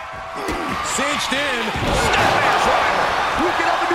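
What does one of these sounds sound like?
A body slams hard onto a wrestling mat with a heavy thud.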